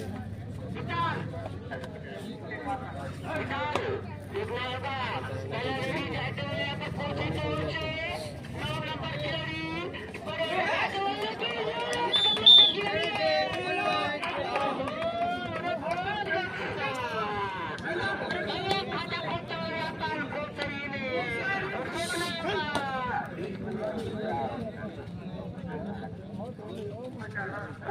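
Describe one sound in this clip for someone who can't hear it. A young man chants rapidly and over and over.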